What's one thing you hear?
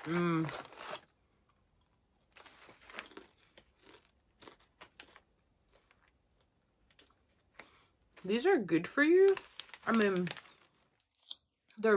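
A plastic snack bag crinkles and rustles in a young woman's hands.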